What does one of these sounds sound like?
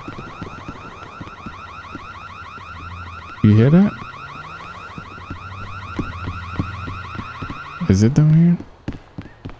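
A siren wails steadily nearby.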